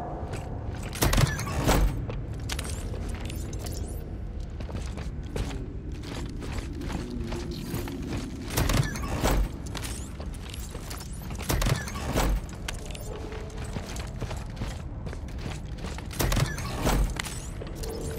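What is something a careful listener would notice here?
Heavy boots stomp and clank on a metal floor.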